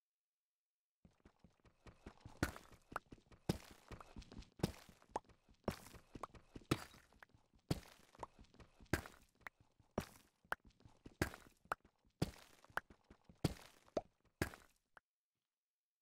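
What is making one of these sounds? A pickaxe chips at stone and breaks blocks with quick, rhythmic blows.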